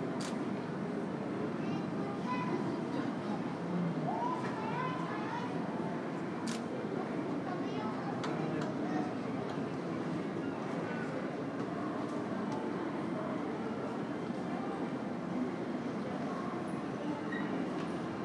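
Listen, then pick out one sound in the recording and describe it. A low, steady hum fills a large echoing hall.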